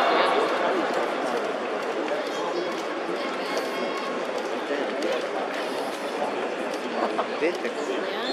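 A large stadium crowd murmurs and cheers steadily all around.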